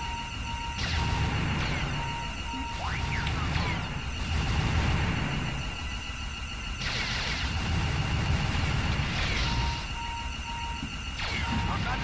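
Laser shots zap rapidly.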